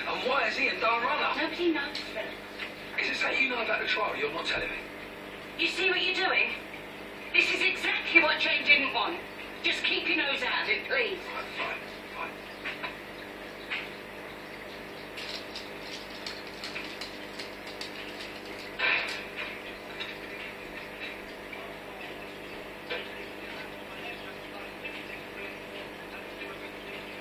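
An aquarium filter hums steadily.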